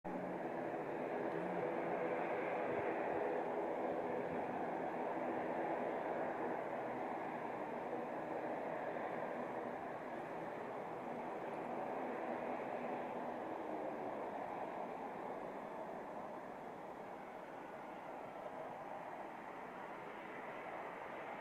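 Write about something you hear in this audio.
A jet airliner's engines roar steadily as it comes in to land, slowly growing fainter.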